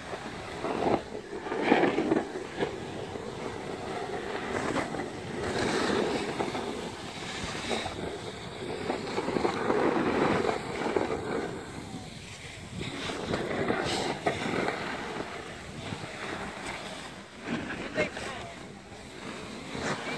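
A snowboard scrapes and hisses over snow close by.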